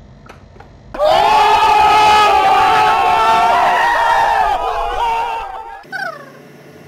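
A crowd of young men shouts and cheers loudly outdoors.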